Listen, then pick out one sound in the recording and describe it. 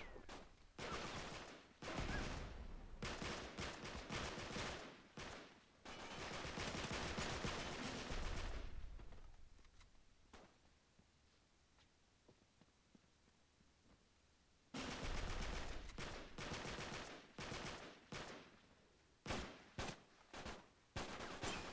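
Automatic rifles fire in bursts.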